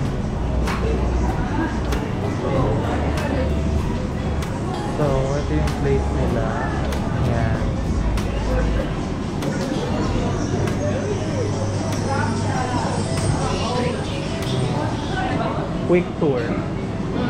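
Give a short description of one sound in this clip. A crowd of diners chatters throughout in a busy room.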